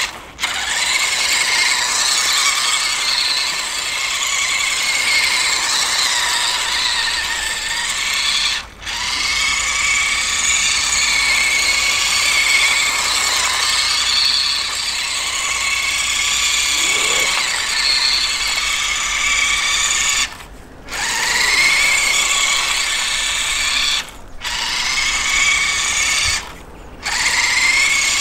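A small electric motor whines loudly, pausing now and then.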